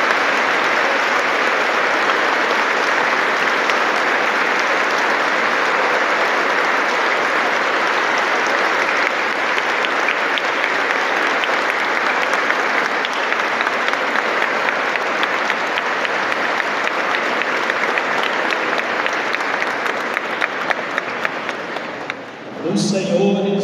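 A large crowd claps and applauds steadily in a big echoing hall.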